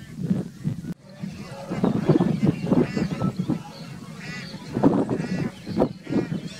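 Geese honk and cackle nearby.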